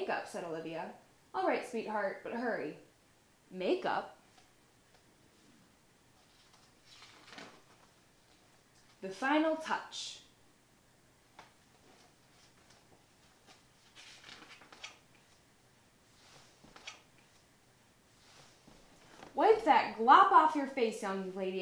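A young woman reads aloud calmly, close by.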